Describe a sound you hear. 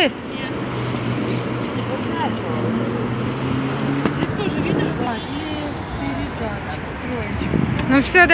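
A bicycle rattles and ticks as it is wheeled along.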